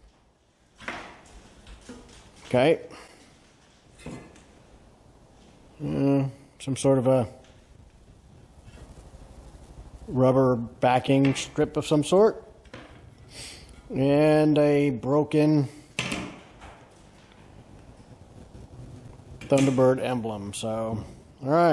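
Metal trim pieces clank as they are set down on wood.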